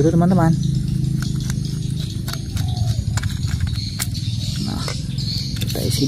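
A small screwdriver scrapes and clicks against screws in a plastic toy.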